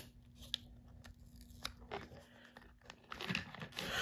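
A sticker peels off its backing with a soft crackle.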